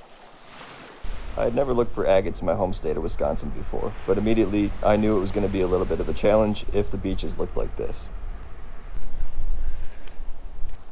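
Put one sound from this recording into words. Surf rolls in along a beach, outdoors in wind.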